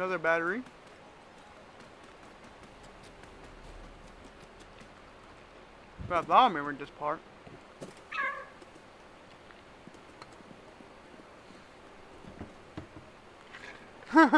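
A cat meows loudly several times.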